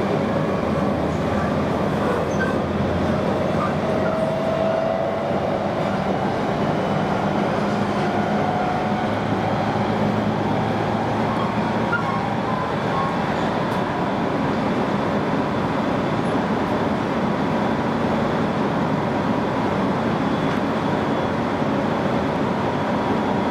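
An electric train rumbles along at speed, heard from inside a carriage.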